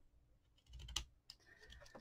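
Pliers snip with a sharp click.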